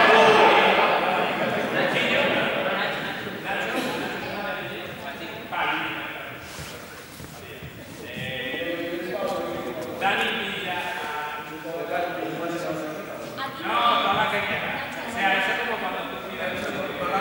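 A man speaks loudly to a group in a large echoing hall.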